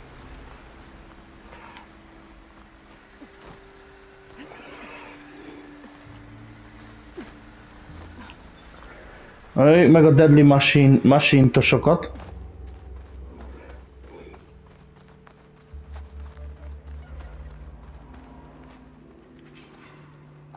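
Footsteps tread over rough ground.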